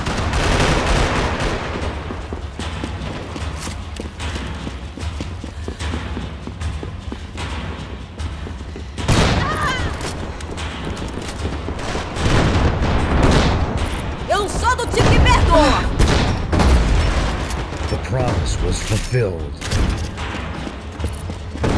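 Footsteps run quickly on a hard floor.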